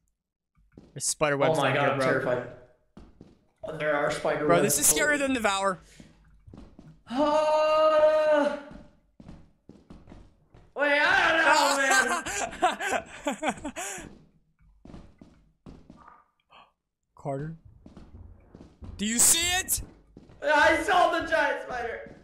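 A young man talks and shouts with animation close to a microphone.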